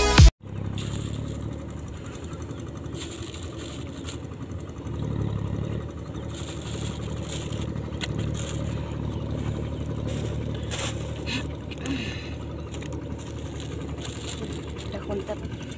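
A plastic bag rustles and crinkles in a hand.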